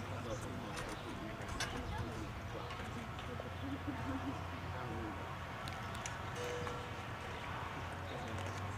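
A brass and woodwind band plays outdoors.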